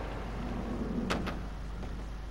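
A thud sounds as a small figure flips onto a ceiling.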